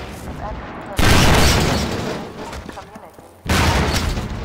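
A loud explosion booms and debris clatters.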